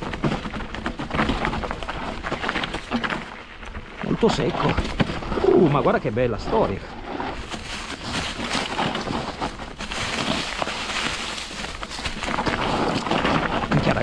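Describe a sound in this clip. Bicycle tyres roll and crunch over a dirt trail strewn with dry leaves.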